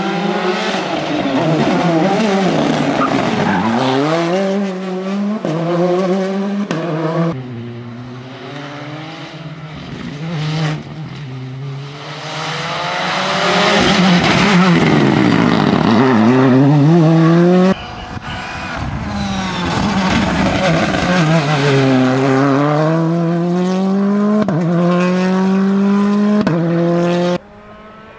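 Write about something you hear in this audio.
A rally car engine revs hard and roars past, changing pitch through its gears.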